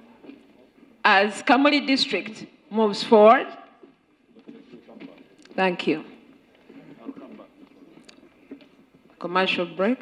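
A woman speaks loudly over a loudspeaker in an echoing hall.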